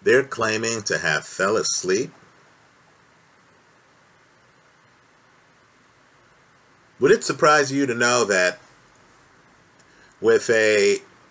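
A man speaks close to the microphone, in short calm bursts with pauses.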